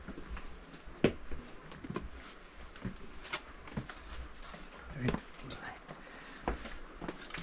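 Footsteps scuff on stone steps, coming closer.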